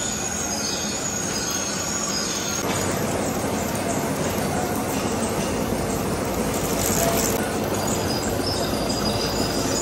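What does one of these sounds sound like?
A cutting tool scrapes and whines against spinning steel.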